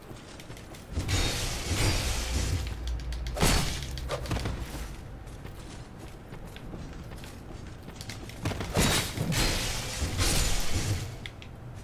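A heavy axe swings through the air with a whoosh.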